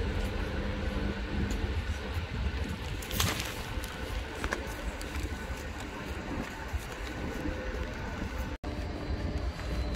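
Footsteps patter on pavement.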